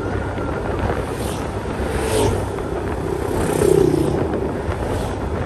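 Motorcycles pass close by with a brief roar.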